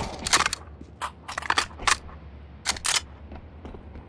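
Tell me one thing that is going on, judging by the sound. A rifle is reloaded with metallic clicks.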